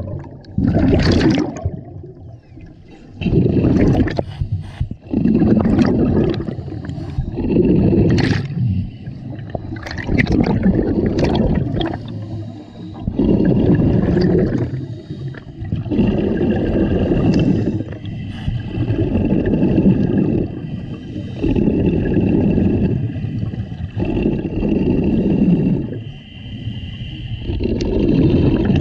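A diver breathes through a regulator underwater in slow, regular breaths.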